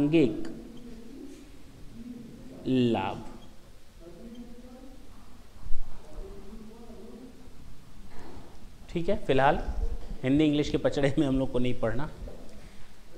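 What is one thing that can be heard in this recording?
A man lectures in a raised, animated voice, heard close through a microphone.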